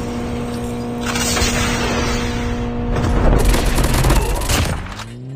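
A jet roars loudly overhead.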